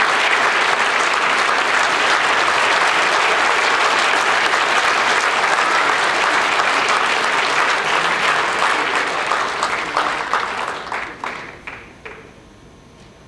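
Loud applause fills a large hall and then dies away.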